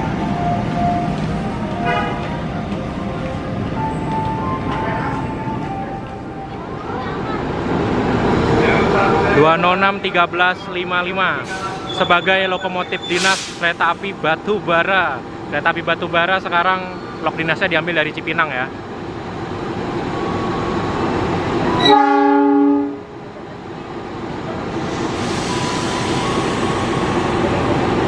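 Train wheels clatter over the rail joints.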